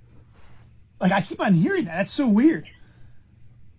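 A man cries out loudly with a rising and falling voice through a microphone.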